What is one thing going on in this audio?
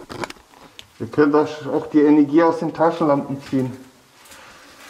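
A man speaks nearby in a low voice.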